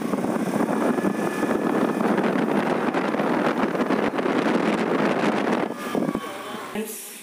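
A scooter engine hums as it moves along.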